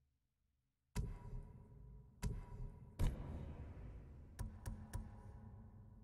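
Soft menu clicks and whooshes sound now and then.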